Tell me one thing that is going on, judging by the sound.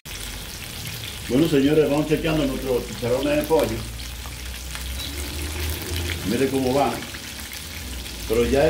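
Food sizzles and bubbles in hot oil.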